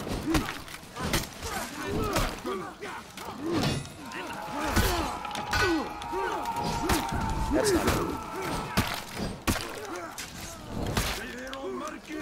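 Swords clash and clang in a fast fight.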